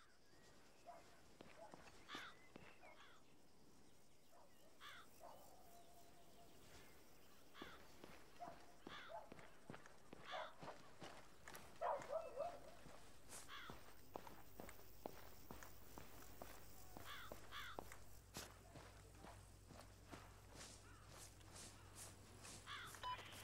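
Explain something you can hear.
Footsteps thud on a road as a soldier runs.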